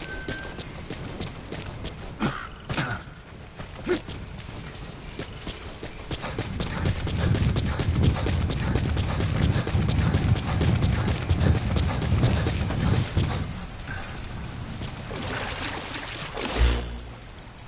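Footsteps crunch quickly over the ground.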